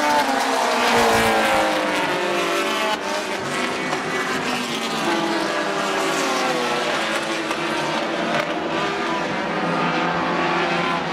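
Race car engines roar and drone around a track.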